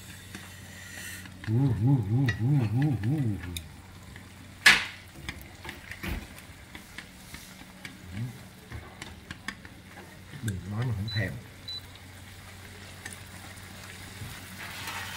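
Chopsticks tap and scrape against a frying pan.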